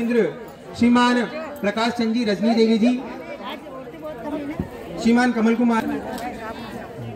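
A group of women sing together close by.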